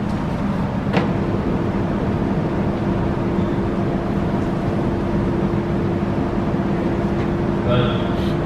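An organ plays steady held notes.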